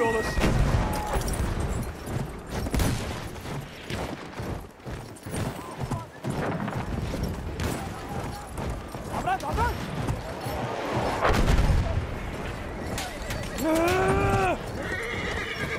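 Horse hooves thud on sand at a gallop.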